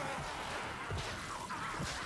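A blade hacks into a body with a wet thud.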